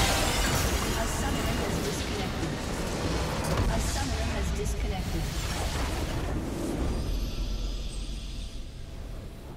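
Game spell effects crash, whoosh and explode in a dense, loud clash.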